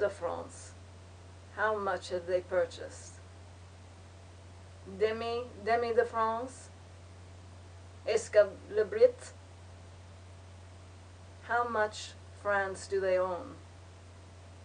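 A young woman speaks calmly and quietly, close by, in short phrases with pauses.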